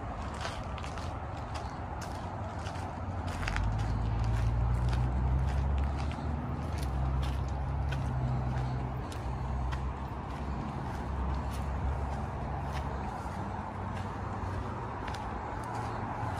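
Footsteps crunch on dry ground and twigs.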